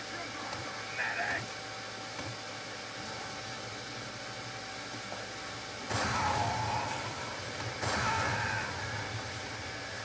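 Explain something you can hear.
Video game shots and effects play through small speakers.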